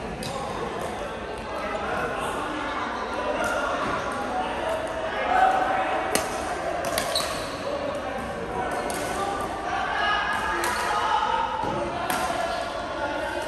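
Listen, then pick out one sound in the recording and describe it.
Several men call out and chatter in a large echoing hall.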